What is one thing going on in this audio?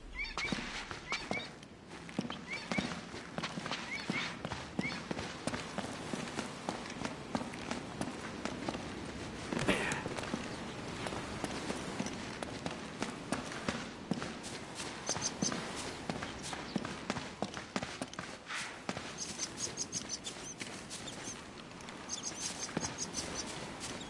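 Footsteps run quickly over a stone floor.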